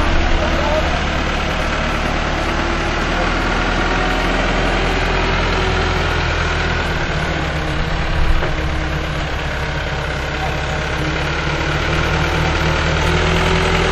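Water splashes under the backhoe's wheels.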